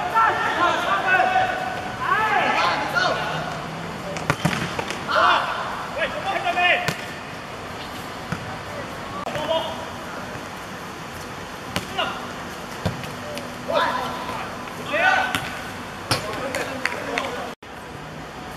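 Young men shout and call out to each other outdoors during a game.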